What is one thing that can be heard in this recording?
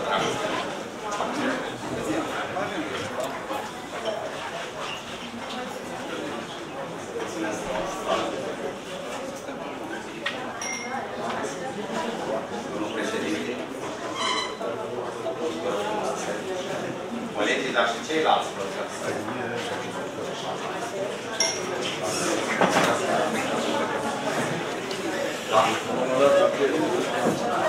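Many people talk at once in a large room.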